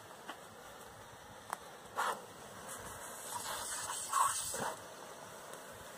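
A garden hose sprays a fine hiss of water.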